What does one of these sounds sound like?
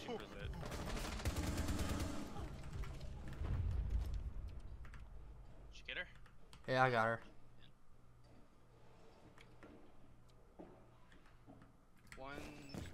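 A man talks into a microphone with animation.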